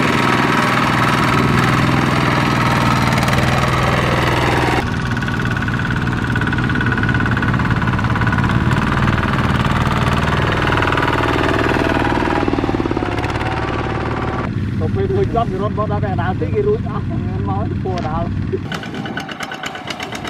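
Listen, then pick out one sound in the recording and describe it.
A small diesel engine chugs and rattles close by.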